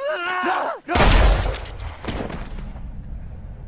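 A gunshot fires loudly and echoes.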